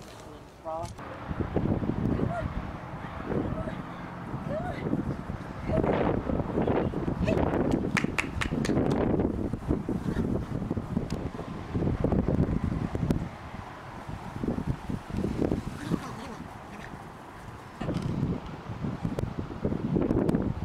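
Puppies yip and whine as they play.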